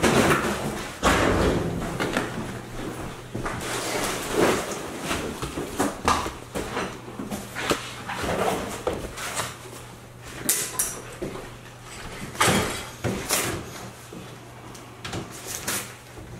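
A man carries boxes that bump and rustle.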